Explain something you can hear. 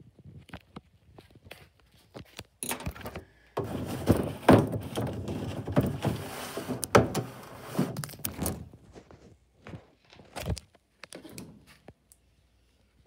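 A plastic bottle cap clicks and scrapes as it is twisted off and set down.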